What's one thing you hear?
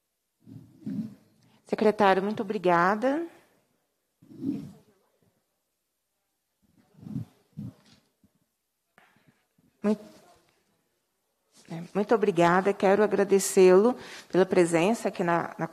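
A woman speaks into a microphone in a calm, measured voice, pausing now and then.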